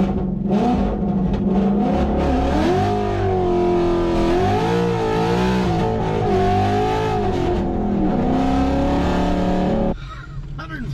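A car engine roars loudly as the car speeds up.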